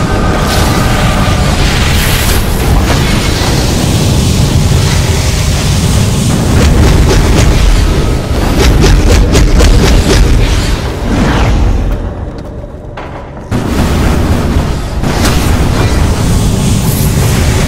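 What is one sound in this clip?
Blows land with sharp, heavy impacts.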